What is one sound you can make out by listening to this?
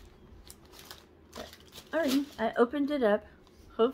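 Paper rustles in a woman's hands.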